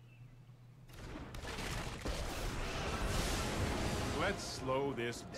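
A game effect whooshes and rumbles in a burst.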